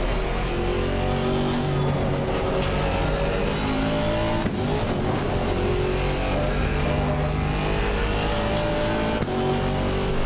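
A racing car engine roars loudly and steadily, rising in pitch as it accelerates.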